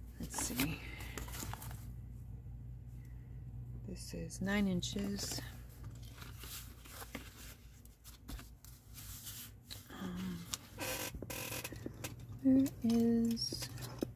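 Paper rustles as it is handled and folded.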